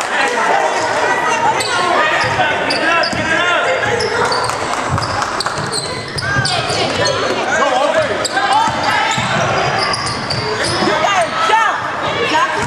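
A crowd of spectators chatters and cheers nearby.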